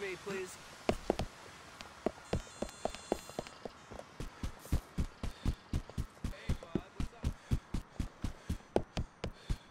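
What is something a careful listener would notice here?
Footsteps thud quickly on a paved path.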